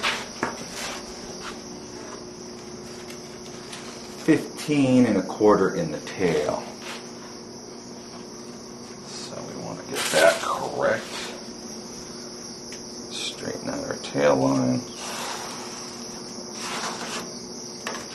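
A pencil scratches lightly along a board.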